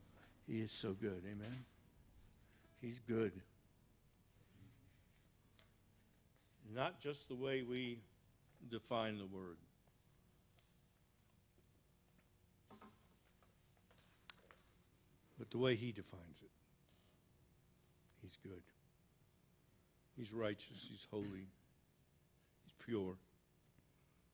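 A man speaks into a microphone, calmly and in short phrases, heard through loudspeakers in an echoing hall.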